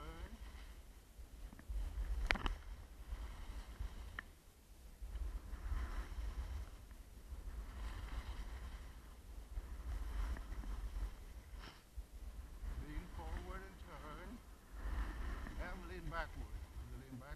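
Skis scrape and hiss over packed snow.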